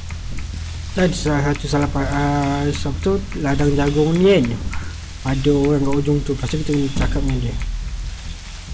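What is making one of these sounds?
A young man sings loudly close to a microphone.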